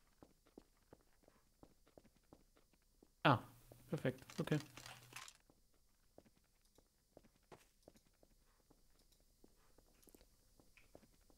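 Footsteps thud quickly on a wooden deck.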